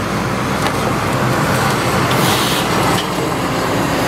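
Scrap metal and debris clatter and crunch in an excavator's grab.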